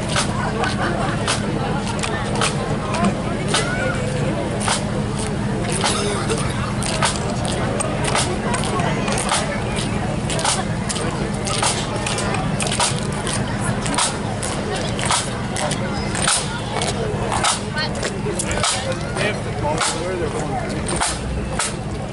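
Bagpipes play a steady droning tune outdoors.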